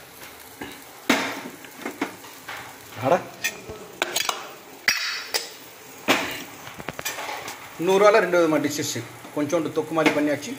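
A steel container clinks against a metal stovetop.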